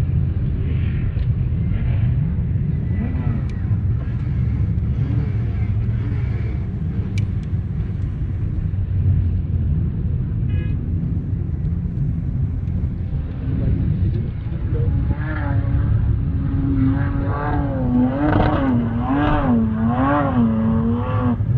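Engines of several cars hum as they drive slowly over sand in the distance.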